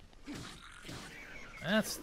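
A club strikes a creature with a sharp smack.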